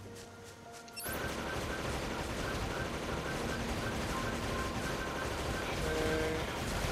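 Gunfire and explosions crackle in a video game battle.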